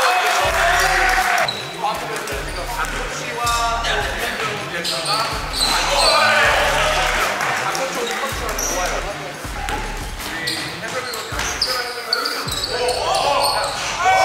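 A basketball thumps as it is dribbled.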